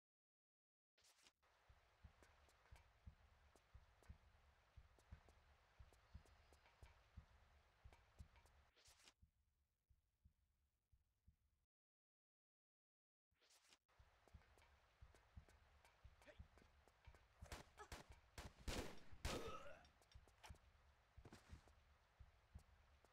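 Footsteps tap quickly and steadily on a hard floor.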